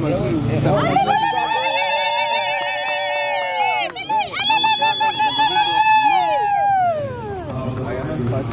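Women sing loudly with a trilling voice close by.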